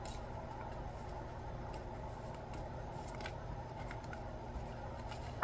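Playing cards riffle and flick softly as they are shuffled by hand.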